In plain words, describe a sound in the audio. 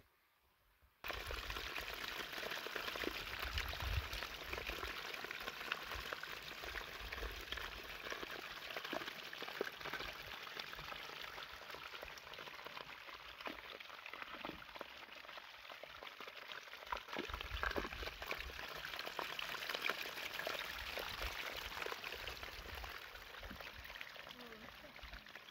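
Water trickles and splashes in a small stream.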